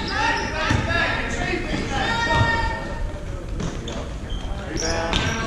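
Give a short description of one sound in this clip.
Spectators and players shout and chatter nearby.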